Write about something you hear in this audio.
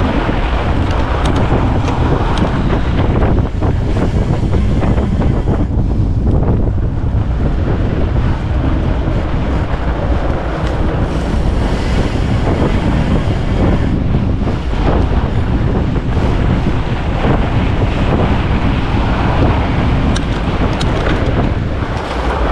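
Fat bike tyres crunch over packed snow.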